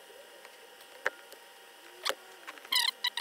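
Pliers click sharply a few times.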